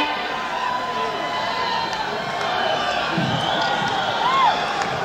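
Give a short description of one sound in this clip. Electric guitars play loud rock music through a big outdoor sound system.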